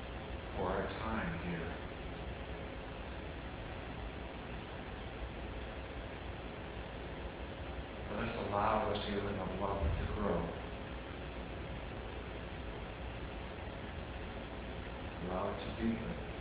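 A man speaks slowly and calmly from across a room, with long pauses.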